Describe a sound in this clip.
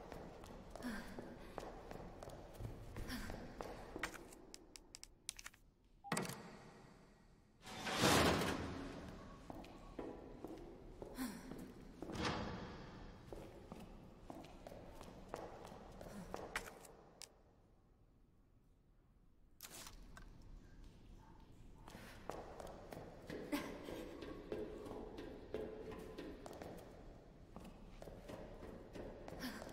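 Footsteps clank on a hard metal floor.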